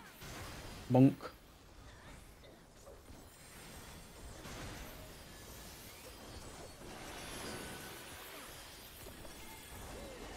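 Magical blasts whoosh and boom in a fantasy battle.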